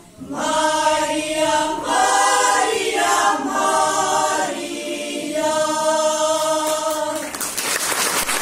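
A group of women sings together in a large echoing hall.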